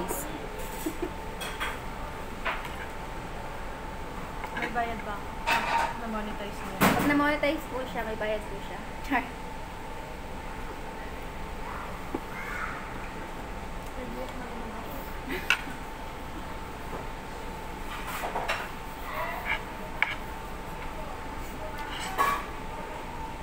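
Cutlery clinks against bowls and plates.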